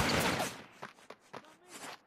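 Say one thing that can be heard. Footsteps run across a rooftop.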